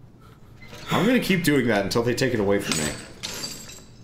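Bolt cutters snap through a metal chain.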